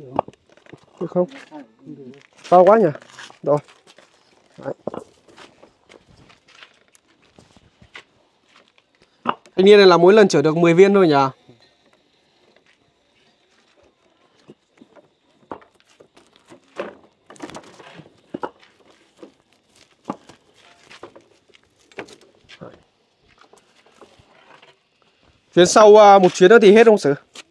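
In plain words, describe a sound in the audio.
Bricks clack and knock as they are stacked.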